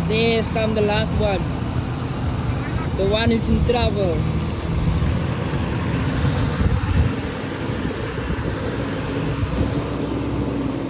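A vehicle engine rumbles as it drives through shallow water.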